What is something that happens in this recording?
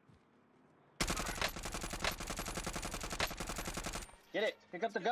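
A rifle fires in quick bursts of shots.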